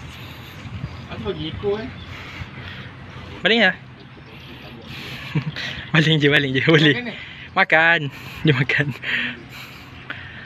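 A young man talks casually nearby, outdoors.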